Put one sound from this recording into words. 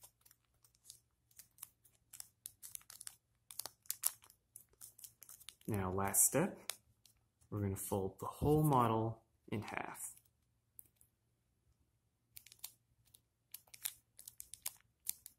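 Paper crinkles and rustles as it is folded close by.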